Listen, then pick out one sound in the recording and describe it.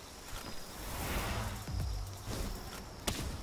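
A fireball bursts with a loud whoosh.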